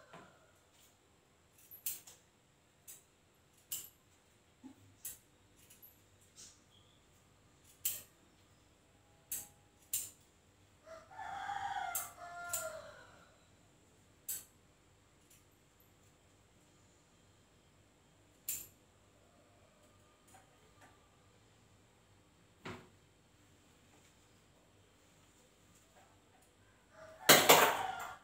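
A sewing machine clicks and whirs in short bursts nearby.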